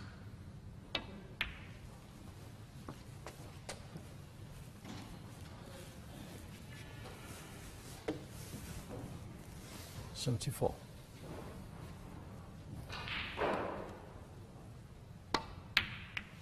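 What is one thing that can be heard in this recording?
A cue tip strikes a snooker ball with a sharp tap.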